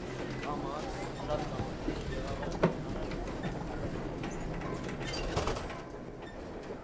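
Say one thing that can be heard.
Clothing rustles as people push past each other.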